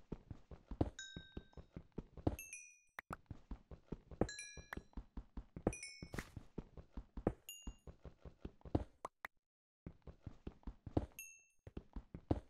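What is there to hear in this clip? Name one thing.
Small pops sound as items are picked up in a game.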